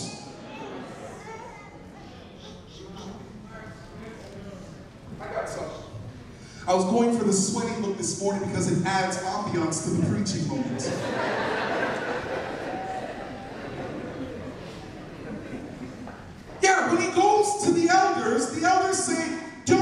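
A man preaches loudly and with animation through a microphone in an echoing hall.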